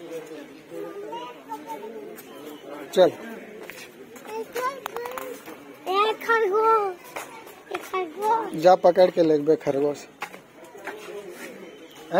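A young child babbles and talks close by.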